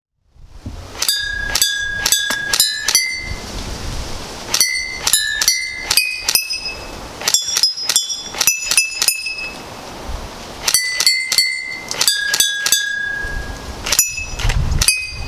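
An airsoft gun fires in quick bursts of sharp snaps.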